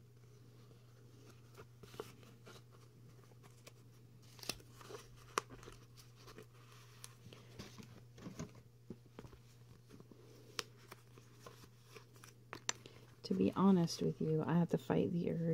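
Sheets of stiff paper rustle and flap as they are handled.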